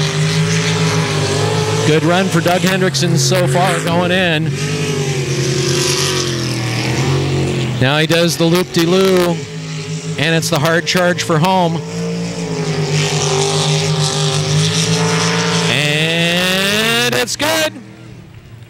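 A jet boat engine roars loudly and revs up and down.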